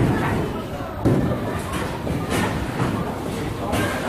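A bowling ball rumbles down a wooden lane.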